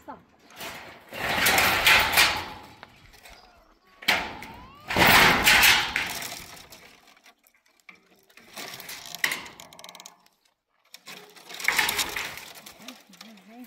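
Dry branches scrape and crackle as they are dragged over stony ground.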